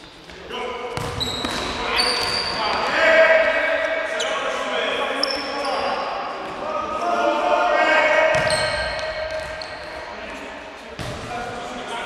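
A ball is kicked with echoing thuds in a large hall.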